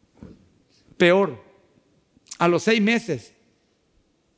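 A man speaks with emphasis into a headset microphone, in short phrases with pauses.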